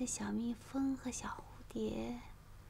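A woman speaks softly and close.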